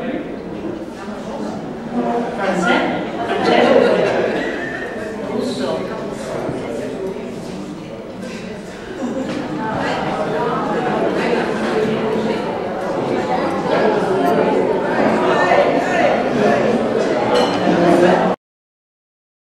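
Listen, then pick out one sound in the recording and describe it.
A young woman speaks with animation into a microphone in a reverberant hall.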